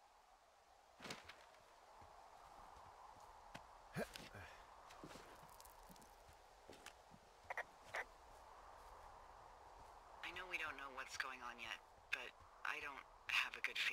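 Footsteps crunch on dry ground and grass.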